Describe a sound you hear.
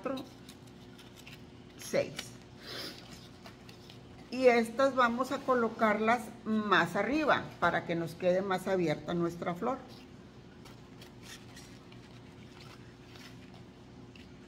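Paper rustles and crinkles in hands.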